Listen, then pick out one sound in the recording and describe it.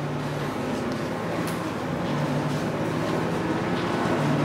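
Footsteps walk across a floor indoors.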